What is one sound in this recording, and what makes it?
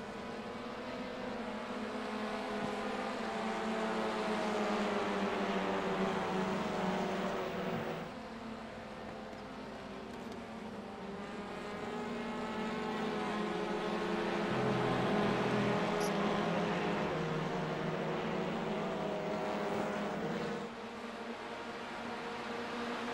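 Several racing car engines roar steadily, rising and falling in pitch as they pass.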